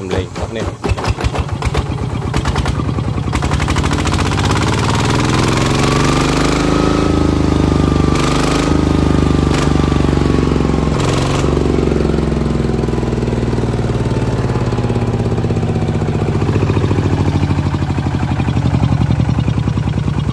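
A small diesel engine runs close by with a steady, rapid chugging and revs up and down.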